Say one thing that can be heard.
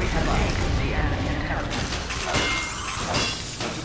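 A sentry gun is built with mechanical whirring and clanks.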